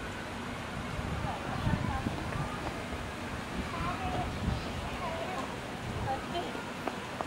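Water splashes as an animal wades through it.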